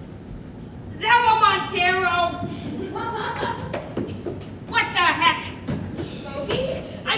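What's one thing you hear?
A young man speaks loudly and with animation, echoing in a large hall.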